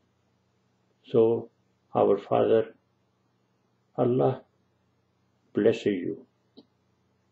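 An elderly man speaks calmly and slowly in short phrases, close to a microphone.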